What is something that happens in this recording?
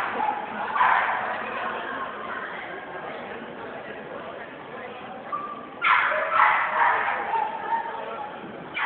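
A handler shouts commands to a dog in a large echoing hall.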